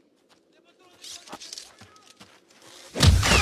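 A man runs through snow with crunching footsteps.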